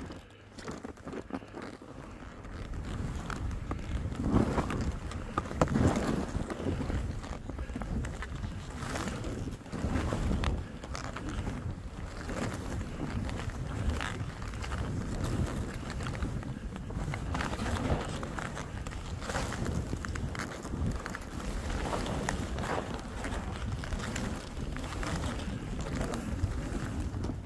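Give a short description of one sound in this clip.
Skis carve and scrape through snow in rhythmic turns.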